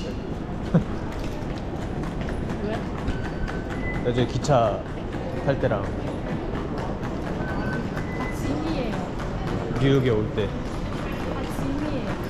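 Suitcase wheels roll over a tiled floor.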